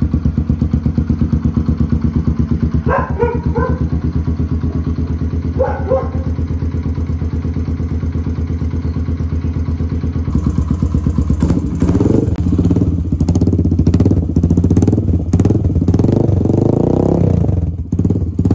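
A motorcycle engine idles with a steady, rapid putter.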